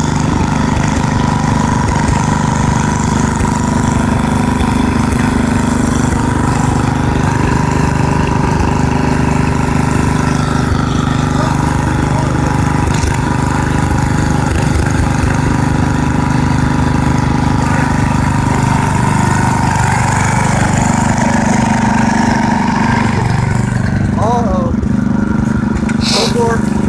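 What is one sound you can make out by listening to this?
A small engine runs loudly and steadily, revving up as it drives off.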